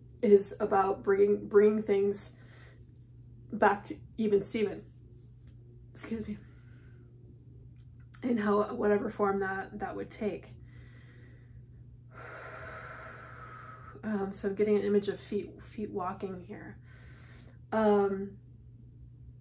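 A woman talks calmly and close by, in short bursts with pauses.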